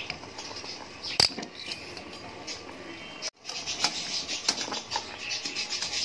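Metal tongs knock against the side of a pot.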